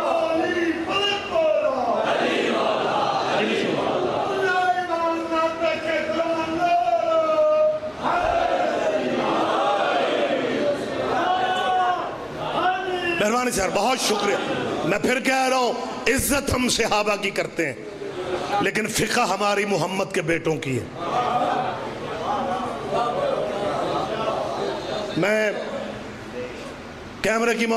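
A middle-aged man chants and speaks with passion through a loudspeaker microphone.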